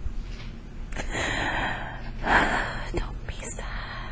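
A young woman groans and breathes heavily close by.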